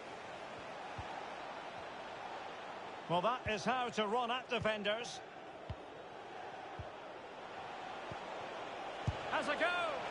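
A ball is struck with short dull thumps.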